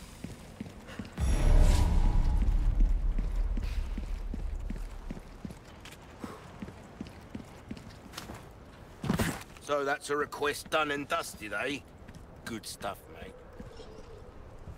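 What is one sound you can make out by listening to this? Footsteps walk steadily over stone.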